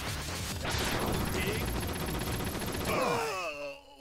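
Fast gunfire sound effects rattle.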